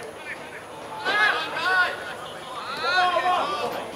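Young men shout loudly to each other outdoors.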